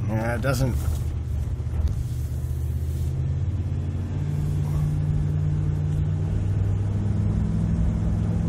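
A car engine hums steadily and climbs in pitch as the car speeds up.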